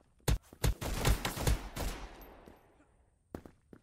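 Pistol shots crack in a quick burst, ringing out afterwards.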